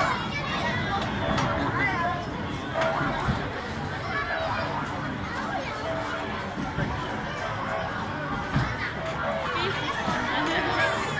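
A fairground ride whirs as its cars spin round.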